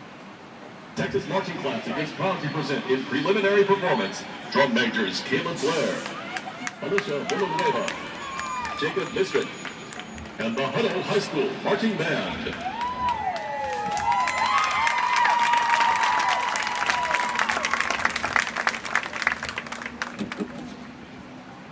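A marching band plays brass music outdoors in a large open stadium.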